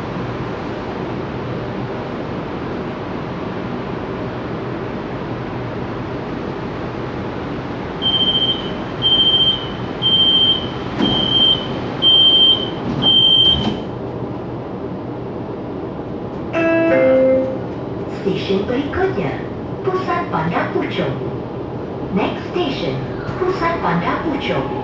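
A train hums steadily while standing still.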